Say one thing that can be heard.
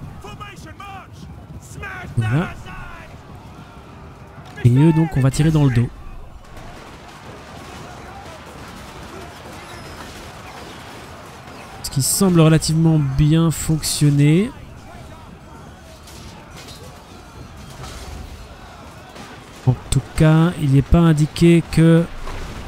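A large army tramps across the ground with a low, steady rumble.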